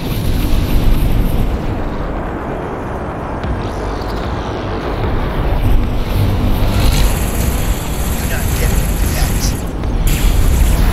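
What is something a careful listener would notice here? A spaceship engine rumbles deeply and steadily.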